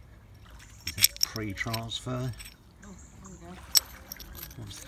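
Pottery shards clink together in a hand.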